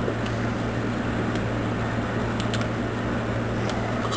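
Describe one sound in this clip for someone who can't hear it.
Thick liquid pours from a cup into a metal mixing bowl.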